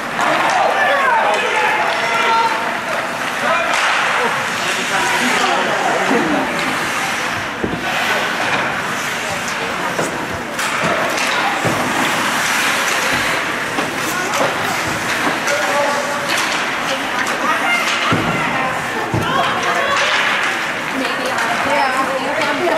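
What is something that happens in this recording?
Spectators shout and cheer in an echoing arena.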